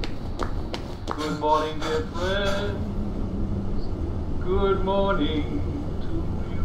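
A man speaks with animation through a small loudspeaker.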